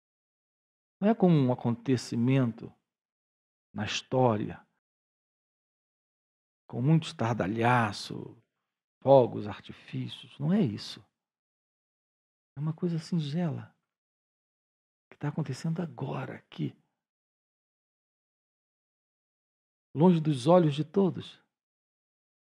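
A middle-aged man speaks calmly and with animation into a clip-on microphone, pausing between phrases.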